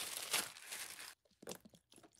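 A plastic bottle crinkles in a gloved hand.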